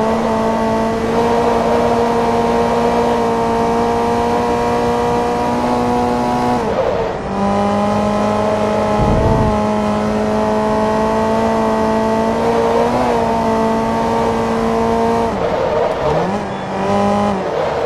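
A car engine drones at high revs, dropping in pitch briefly as gears shift.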